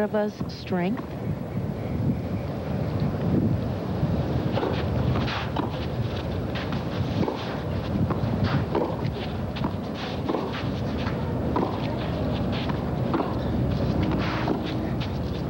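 Tennis balls are struck with rackets in a rally.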